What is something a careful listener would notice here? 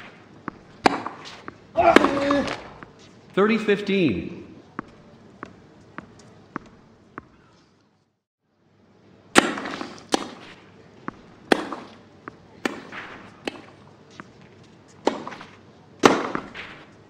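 A tennis ball is struck sharply with rackets, back and forth.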